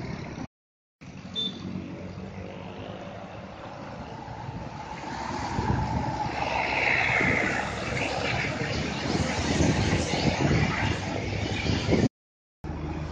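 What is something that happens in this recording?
A bus engine roars as it climbs around a bend.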